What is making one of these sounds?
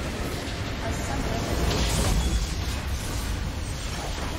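A large crystal explodes with a deep boom.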